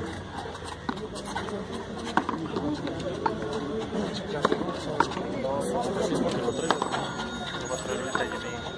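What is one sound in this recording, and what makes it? A ball smacks sharply against a wall in a large echoing court.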